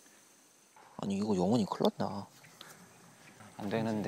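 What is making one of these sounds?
A man speaks with animation outdoors, a little further off.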